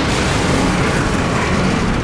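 A steam train chugs along a track.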